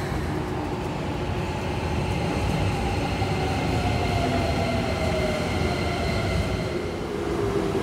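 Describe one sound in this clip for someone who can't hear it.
An electric train motor whines and slowly falls in pitch.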